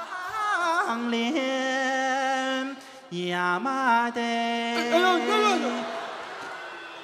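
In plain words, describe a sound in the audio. A man sings loudly through a microphone on a stage.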